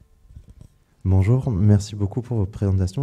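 A man speaks into a microphone over loudspeakers, calmly.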